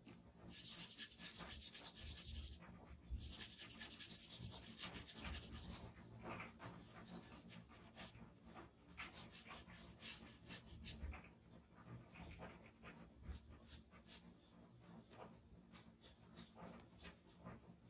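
A cotton swab rubs and scratches softly against paper.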